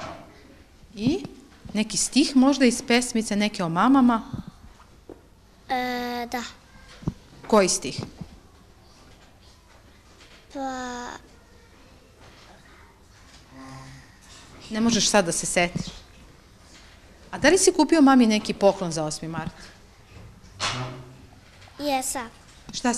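A young boy talks quietly and hesitantly, close by.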